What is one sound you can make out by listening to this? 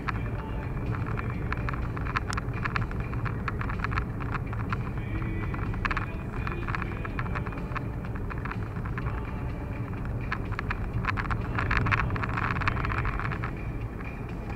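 A car engine rumbles steadily from inside while driving.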